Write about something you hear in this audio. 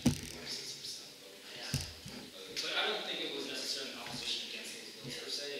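A young man speaks calmly across a table.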